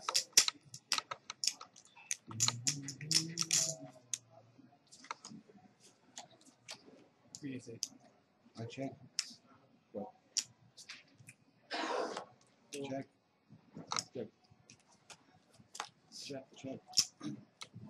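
Poker chips click and clatter together.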